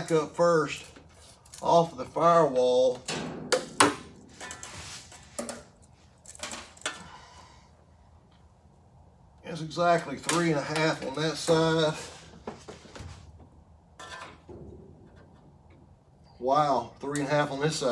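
Metal tools clink and click against engine parts.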